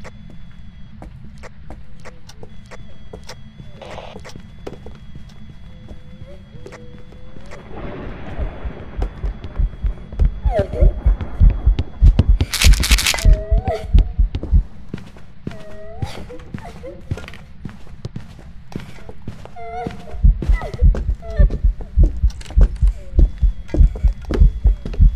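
Footsteps thud on a wooden floor indoors.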